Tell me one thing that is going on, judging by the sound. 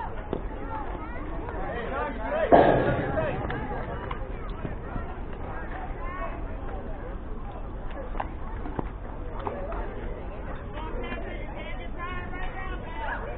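Young players shout and chatter across an open field.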